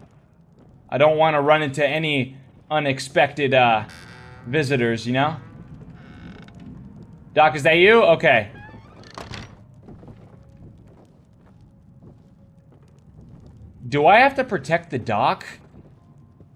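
A young man talks with animation close to a microphone, with pauses.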